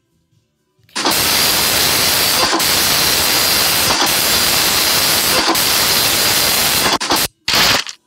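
A scanning machine hums loudly and steadily.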